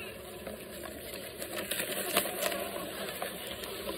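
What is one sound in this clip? A plastic bottle crinkles as it is handled.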